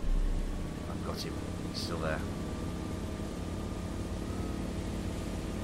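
Water splashes against a boat's hull.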